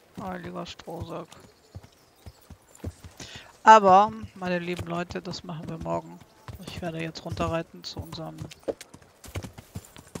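A horse's hooves clop on a dirt road at a walk.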